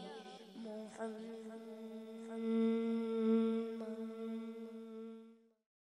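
A boy sings a long held note into a microphone.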